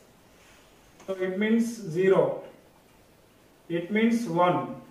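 A young man speaks calmly and clearly nearby.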